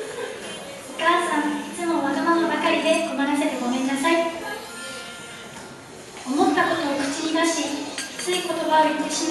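A young woman reads out through a microphone and loudspeakers.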